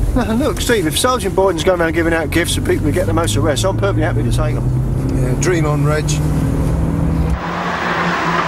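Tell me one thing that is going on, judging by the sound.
A man talks calmly inside a car.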